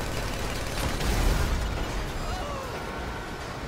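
Explosions burst close by.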